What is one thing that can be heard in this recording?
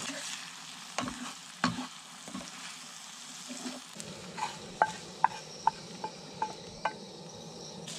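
A wooden spatula scrapes and taps against a metal pan.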